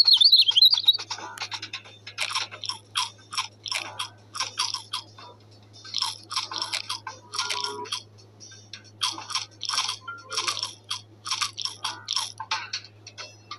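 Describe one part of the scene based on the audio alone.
A cartoon bird munches and crunches on food.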